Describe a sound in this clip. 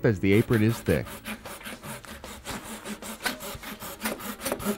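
A chisel scrapes and pares wood.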